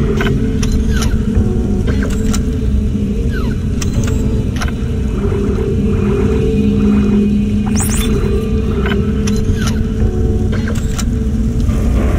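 Electronic menu beeps and clicks sound in quick succession.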